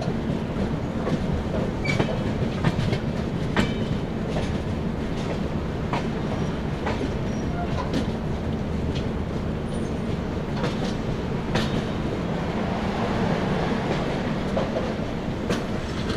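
Train wheels click and clatter over rail joints and points.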